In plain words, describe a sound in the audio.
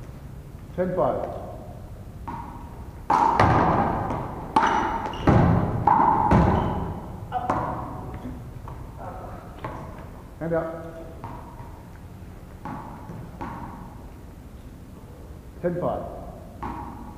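Young boys shout and call out to each other in a large echoing hall.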